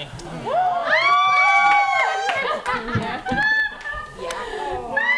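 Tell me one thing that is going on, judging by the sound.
A person claps hands.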